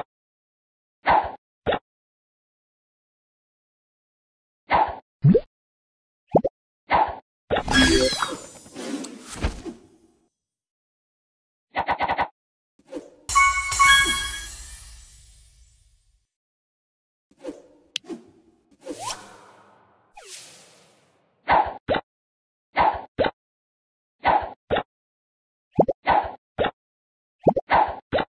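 Game bubbles pop with short bright sounds.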